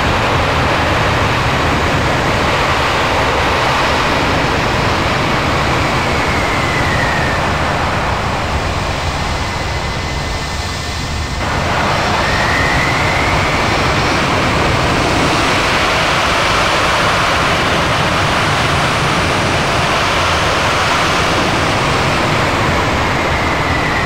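Tyres hiss through water on wet tarmac.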